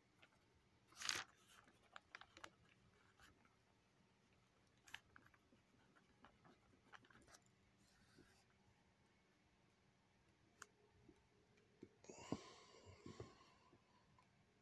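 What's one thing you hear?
Paper rustles softly as notebook pages are handled.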